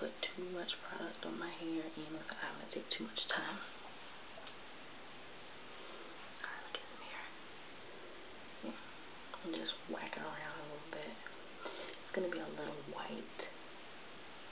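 A young woman talks casually, close up.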